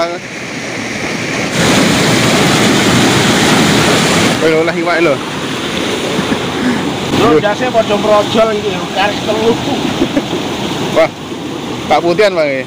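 Water rushes and churns loudly through a sluice.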